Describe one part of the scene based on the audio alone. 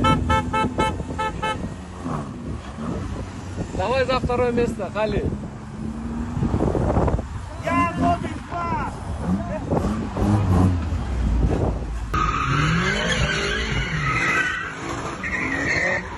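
Car engines rumble in slow traffic.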